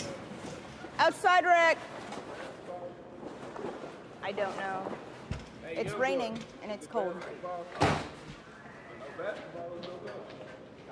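Young men talk loudly nearby in an echoing hall.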